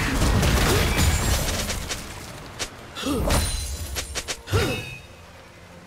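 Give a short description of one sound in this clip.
Game characters strike with sharp hits.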